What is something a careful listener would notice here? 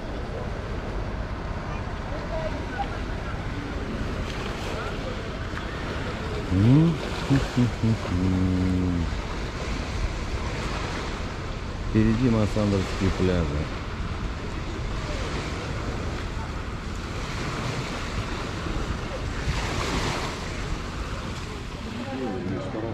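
Small waves splash and wash against a shore outdoors.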